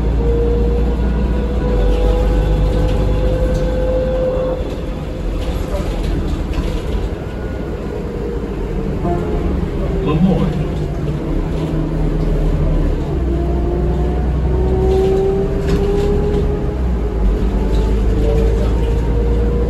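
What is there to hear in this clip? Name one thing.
A bus engine hums and whines steadily while driving.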